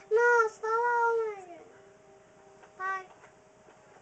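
A toy dog plays short electronic, sing-song sounds close by.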